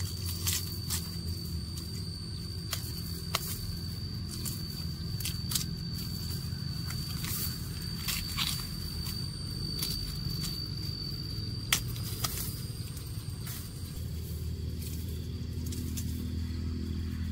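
Dry stalks rustle and snap as they are peeled by hand.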